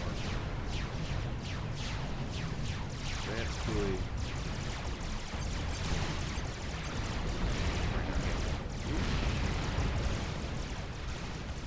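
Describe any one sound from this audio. Explosions boom and rumble in a rapid barrage.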